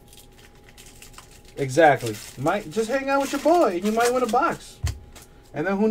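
A foil wrapper crinkles as it is torn open by hand.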